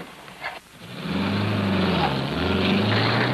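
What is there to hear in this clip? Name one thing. A car engine revs as a car drives off.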